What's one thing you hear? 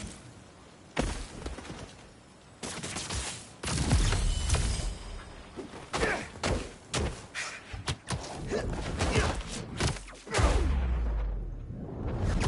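Heavy punches and kicks land with loud thuds and whooshes.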